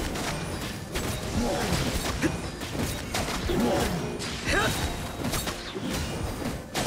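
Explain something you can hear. Magical attacks crackle and boom in rapid bursts.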